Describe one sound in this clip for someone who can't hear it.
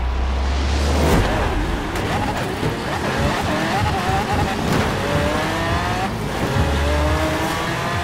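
Car engines roar and rev as cars race away.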